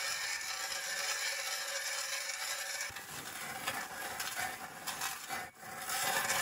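A hand auger grinds into ice.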